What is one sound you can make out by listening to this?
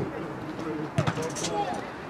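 A ball is kicked hard.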